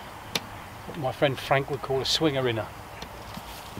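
A man speaks calmly, close by, outdoors.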